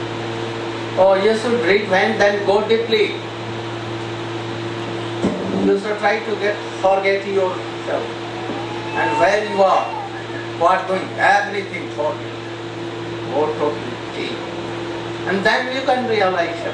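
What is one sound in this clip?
An elderly man speaks calmly into a microphone, heard through a loudspeaker, with long pauses.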